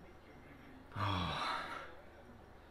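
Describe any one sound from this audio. A young man sniffs a drink close by.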